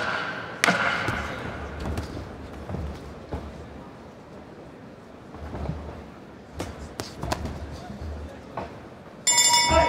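Punches thud against gloves and bodies.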